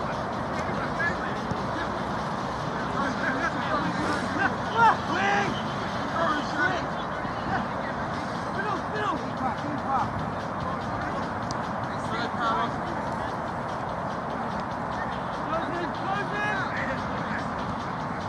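Young men shout and call out across an open outdoor pitch.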